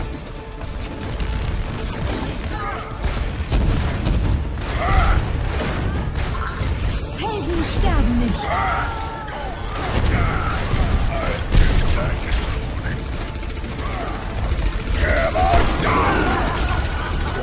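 Gunfire and explosions crackle and boom in a fast game battle.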